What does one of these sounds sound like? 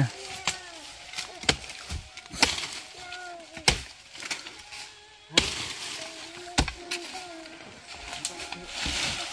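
A man chops into wood with sharp, repeated blows.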